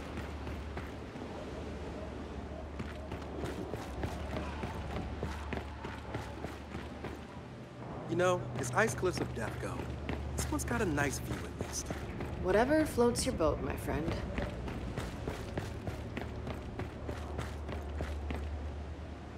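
Footsteps crunch through deep snow.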